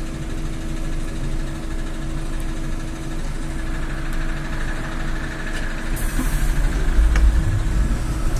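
The bus interior rattles and clatters over the road.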